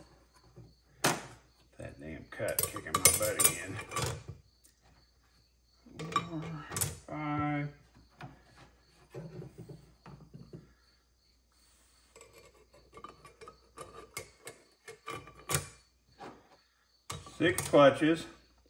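Thin metal plates clink and scrape against each other.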